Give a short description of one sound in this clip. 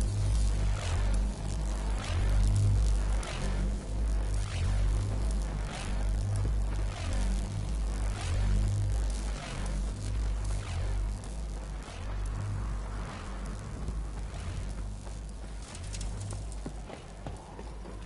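Footsteps crunch steadily on sand and gravel.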